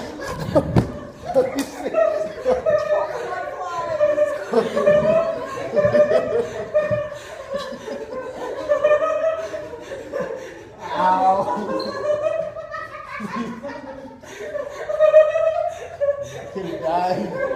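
A young woman laughs hard.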